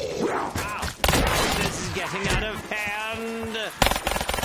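Gunshots fire in loud bursts.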